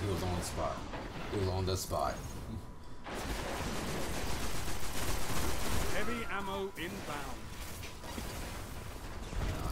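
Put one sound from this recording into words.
Gunfire bursts from a rifle in a game.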